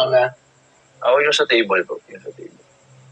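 A young man talks over an online call.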